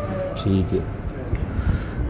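A spoon clinks in a small bowl.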